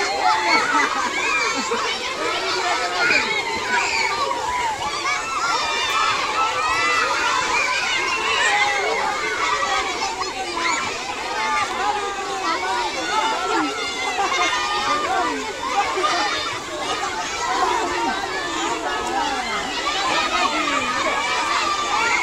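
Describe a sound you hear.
A large crowd of children chatter and shout outdoors.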